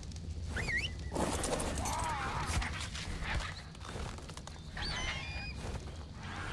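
A small animal squeaks with short high chirps.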